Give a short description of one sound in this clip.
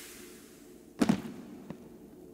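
A book drops and lands with a thud.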